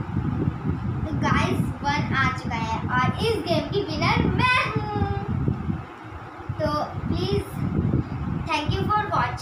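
Young girls sing together close by.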